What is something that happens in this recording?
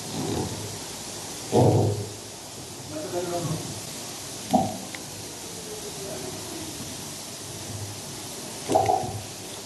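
An elderly man speaks calmly and slowly into a microphone, pausing often.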